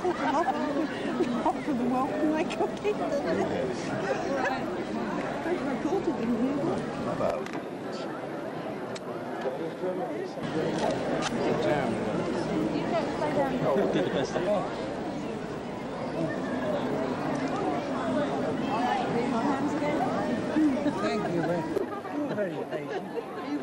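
A crowd of people chatters outdoors all around.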